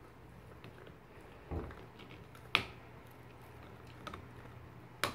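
A dog chews and gnaws on a toy with small wet clicks.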